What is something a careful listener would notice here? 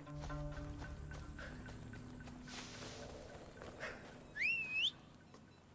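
Footsteps run through dry grass.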